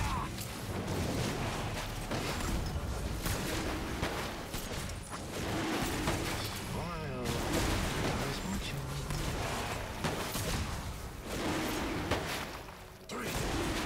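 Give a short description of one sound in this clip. Game sound effects of spells and attacks crackle and whoosh throughout.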